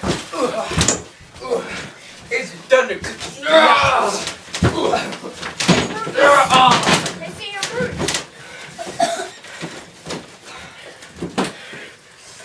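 Bodies thud heavily onto a springy ring mat.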